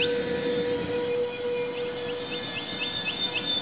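Steam hisses from a locomotive's cylinders.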